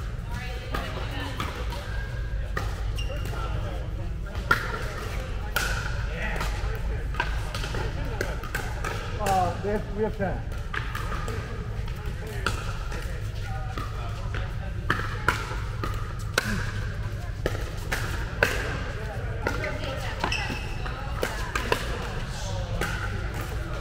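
Men and women chatter in a large echoing hall.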